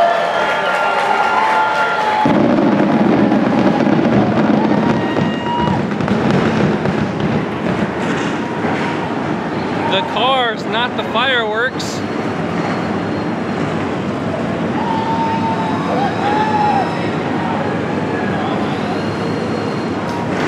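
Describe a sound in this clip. Race car engines rumble loudly and rev nearby.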